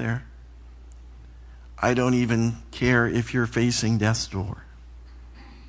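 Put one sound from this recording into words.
A middle-aged man speaks calmly into a microphone.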